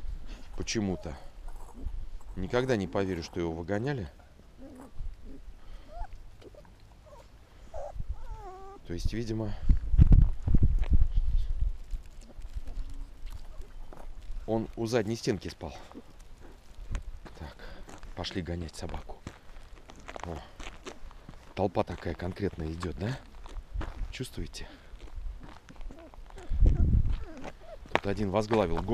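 Puppies whimper and yelp.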